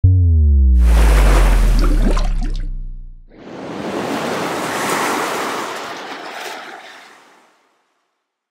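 Water splashes and sprays.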